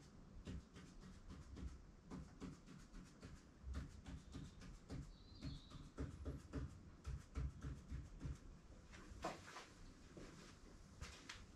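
A marker pen taps and scratches quickly on a hard surface.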